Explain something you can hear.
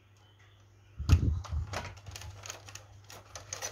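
A plastic toy car clatters as it is turned over.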